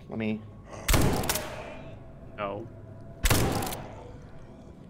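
Gunshots ring out loudly.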